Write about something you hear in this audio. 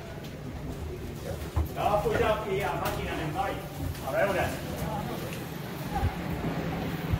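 A cable car cabin rumbles and hums steadily.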